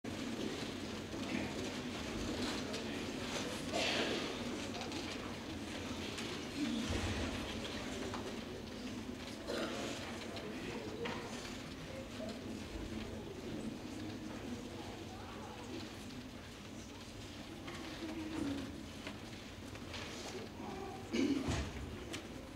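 A male choir sings in a large echoing hall.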